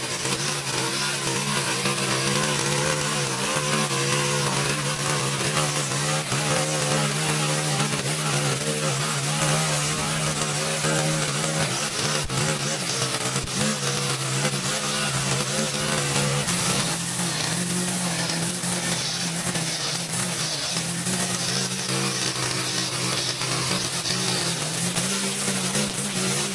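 A string trimmer's engine drones steadily close by.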